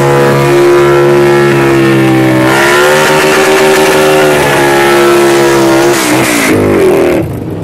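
Tyres squeal as they spin on the road.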